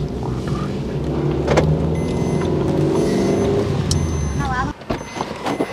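A car engine hums as a car drives slowly past.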